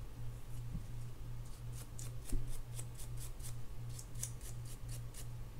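A toothbrush briskly scrubs a small metal part.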